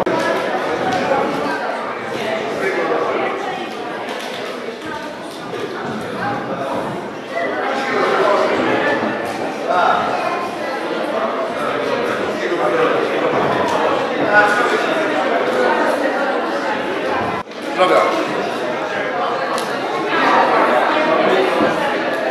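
Children talk and laugh nearby.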